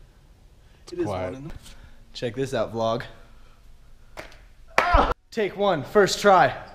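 A young man talks cheerfully right into a microphone.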